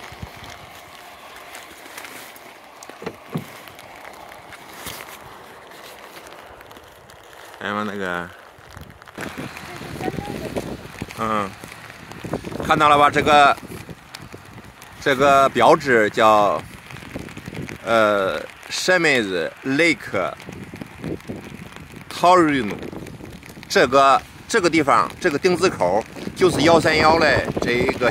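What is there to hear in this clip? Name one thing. Light rain patters on a wet road outdoors.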